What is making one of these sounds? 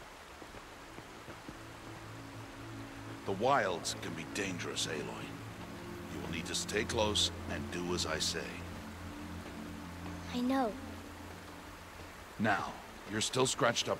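A shallow stream trickles over rocks.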